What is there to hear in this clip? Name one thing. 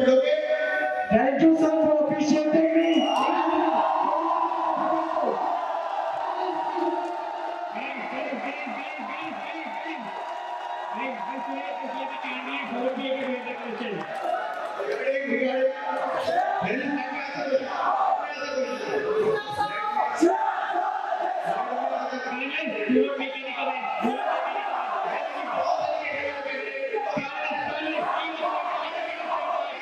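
A young man speaks steadily into a microphone through loudspeakers in an echoing hall.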